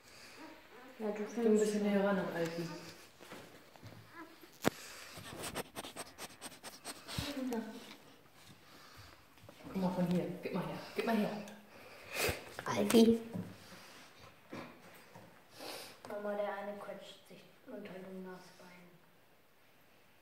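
A young child talks close by.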